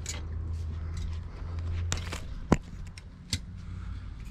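Metal pliers click and snap sharply against a fitting.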